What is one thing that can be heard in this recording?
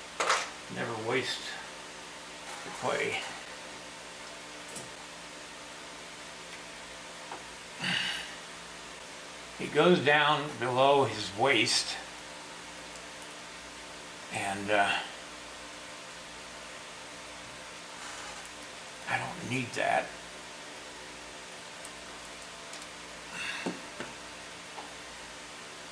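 A middle-aged man talks calmly and close by, in short phrases with pauses.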